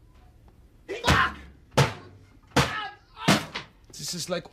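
Drums are struck hard and fast.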